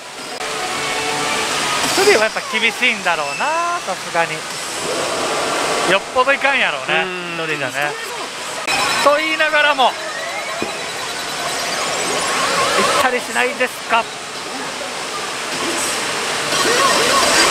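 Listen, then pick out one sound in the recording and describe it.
A pachinko machine plays loud electronic music.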